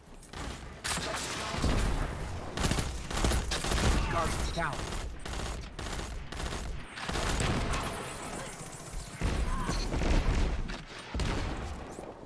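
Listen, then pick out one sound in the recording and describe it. Automatic rifle fire rattles in a video game.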